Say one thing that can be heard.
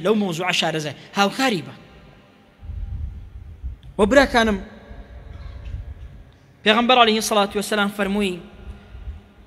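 A man preaches forcefully into microphones in an echoing hall.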